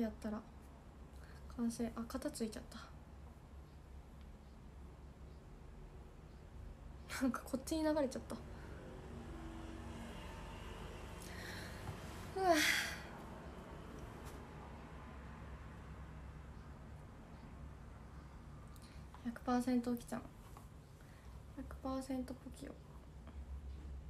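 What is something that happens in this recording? A young woman speaks softly and close by.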